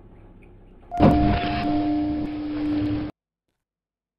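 Elevator doors slide open with a loud rumbling whoosh.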